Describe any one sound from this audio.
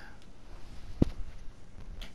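A block is placed with a short thud.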